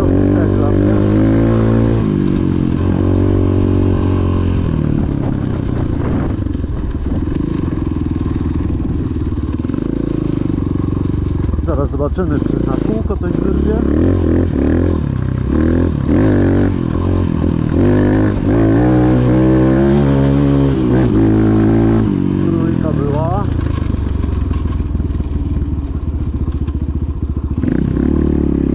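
A dirt bike engine roars close by, revving up and down as it rides.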